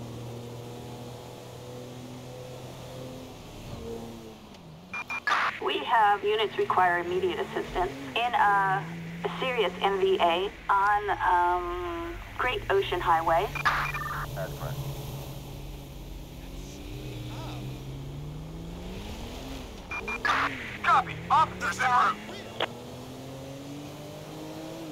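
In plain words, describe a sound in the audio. A car engine hums steadily, rising and falling in pitch as the car drives.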